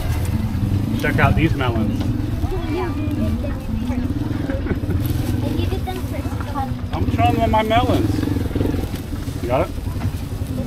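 A young girl speaks nearby in a high voice.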